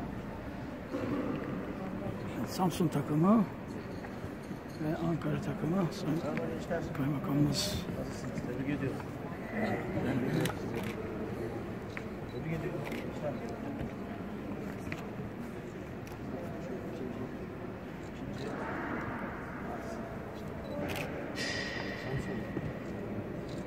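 Boys and adults talk and chatter in a large echoing hall.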